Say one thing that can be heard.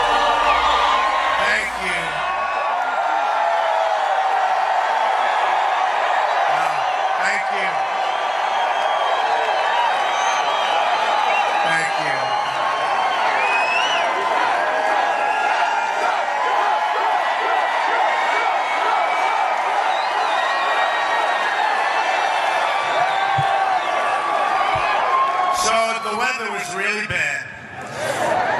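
A crowd claps steadily.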